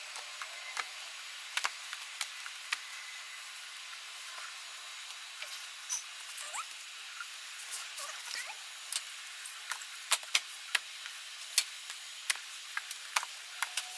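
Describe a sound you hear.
Books slide and tap against each other as they are handled.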